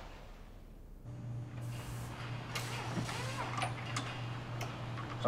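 Metal tools clink and rattle in a drawer.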